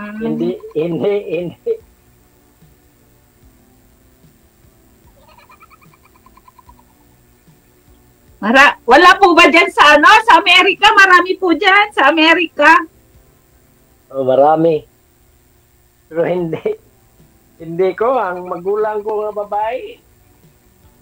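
A middle-aged man talks and laughs over an online call.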